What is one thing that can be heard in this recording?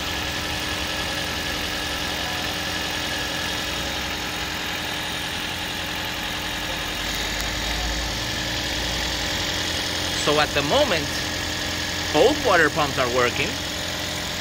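A car engine idles with a steady hum.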